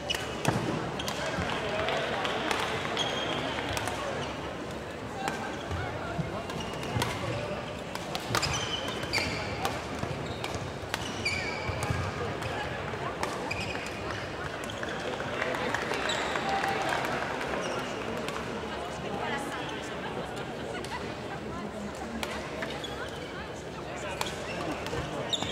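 Shuttlecocks are struck with sharp pops of badminton rackets in a large echoing hall.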